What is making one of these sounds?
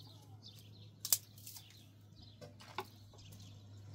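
Metal clanks as a pan is handled.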